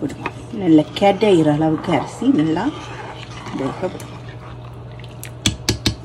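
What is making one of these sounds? A spoon stirs and scrapes in a pot of thick liquid.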